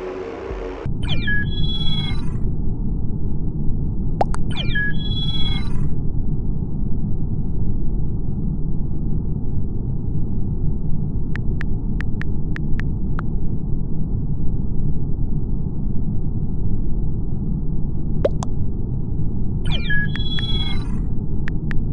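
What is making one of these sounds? A chat notification chimes brightly.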